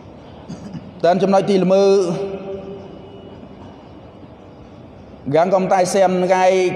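A man recites in a melodic voice through a microphone, in an echoing hall.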